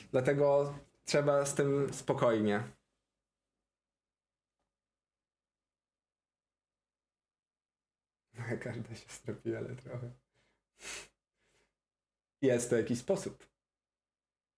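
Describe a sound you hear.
A young man talks with animation close to a microphone, in short bursts with pauses.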